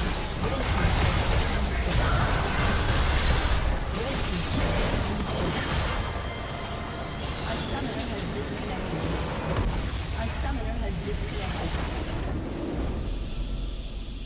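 Magic spells crackle and explosions boom.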